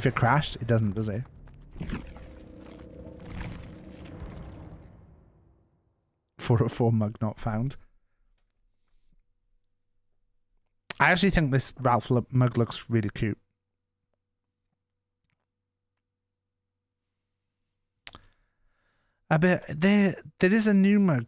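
A man talks into a close microphone in short bursts, with pauses between.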